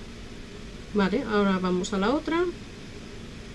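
A woman speaks briefly and calmly close by.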